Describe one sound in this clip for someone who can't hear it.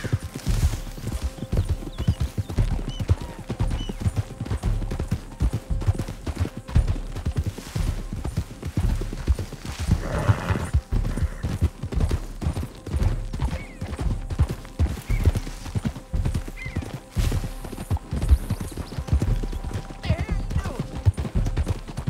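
Horse hooves thud steadily on a dirt trail.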